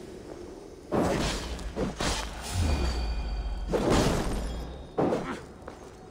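Fire crackles and roars up close.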